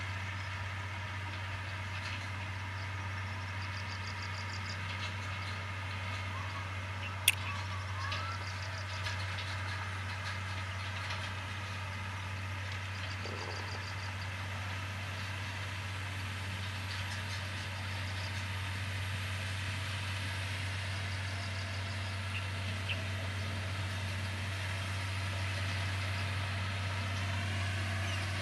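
Loose dirt scrapes and crunches under a heavy blade.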